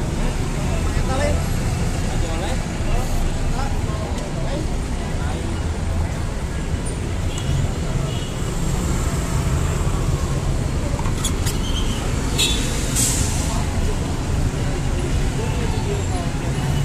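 Traffic rumbles along a busy street.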